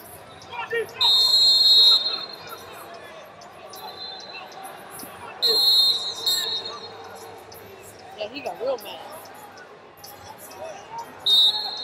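A referee's whistle blows sharply several times.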